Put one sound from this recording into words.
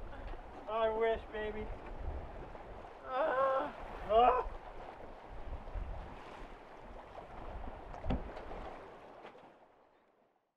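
Wind rumbles and buffets outdoors on open water.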